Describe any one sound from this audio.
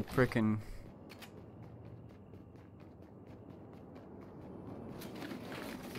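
Quick light footsteps patter on a hard floor.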